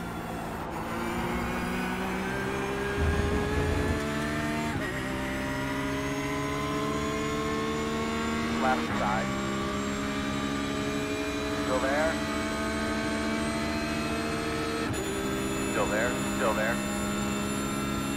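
A racing car engine roars and climbs steadily in pitch as the car speeds up.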